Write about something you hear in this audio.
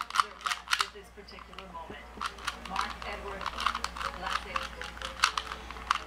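A plastic puzzle cube clicks and clacks as its layers are quickly turned.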